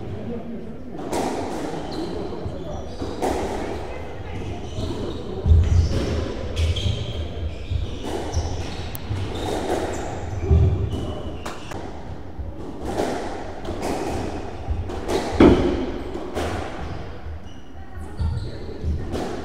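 Rubber soles squeak on the wooden floor.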